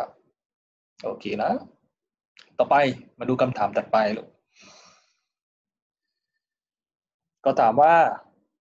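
A young man explains calmly into a microphone, with short pauses.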